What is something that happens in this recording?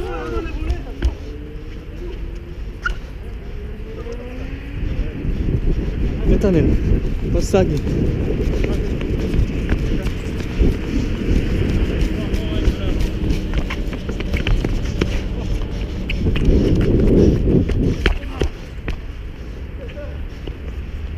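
A football is kicked on a hard court with sharp thuds.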